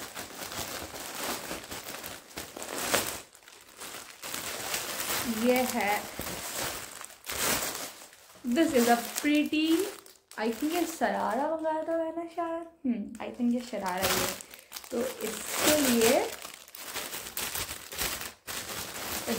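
A plastic bag crinkles and rustles in hands.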